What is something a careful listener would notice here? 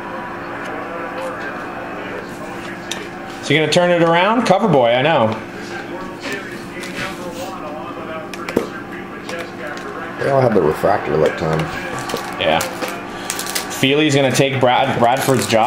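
Cards rustle and tap against a table as hands handle them.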